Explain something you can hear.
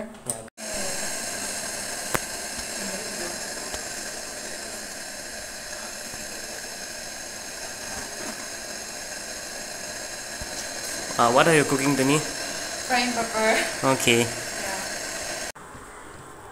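Food sizzles and fries in a pan.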